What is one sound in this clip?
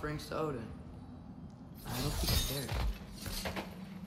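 A chest creaks open with a rattling clatter.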